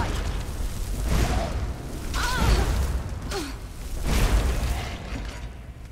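A fire spell bursts with a loud whoosh.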